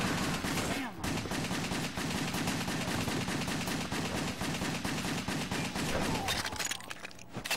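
Gunfire and explosions crackle rapidly in a video game.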